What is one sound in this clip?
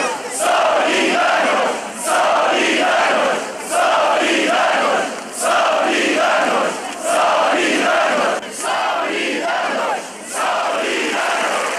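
A large outdoor crowd chants loudly in unison, in rhythmic bursts.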